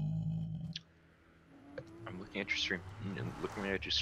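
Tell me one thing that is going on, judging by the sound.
A magic portal hums and whooshes.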